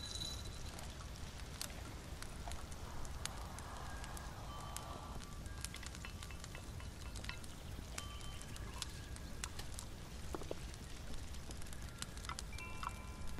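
A small flame crackles softly close by.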